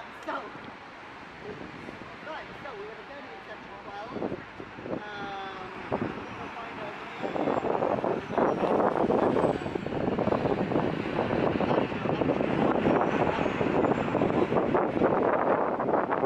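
Traffic passes along a street.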